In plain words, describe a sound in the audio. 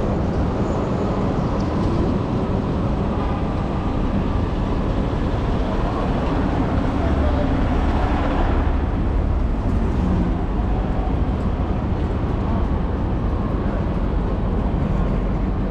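Wind rushes loudly past a moving rider outdoors.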